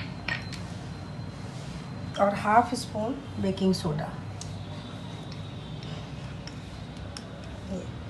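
A small spoon clinks against small bowls.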